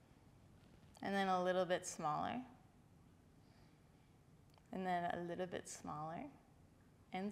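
A young woman speaks calmly and softly, close by.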